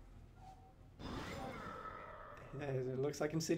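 A magical whoosh swells and fades.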